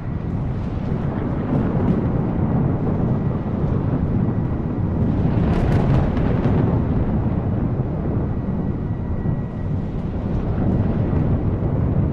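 A jet airliner's engines rumble steadily as it taxis nearby.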